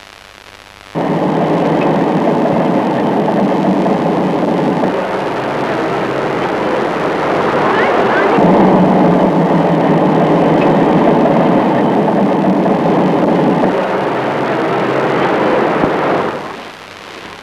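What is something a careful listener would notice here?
Cars drive fast along a highway.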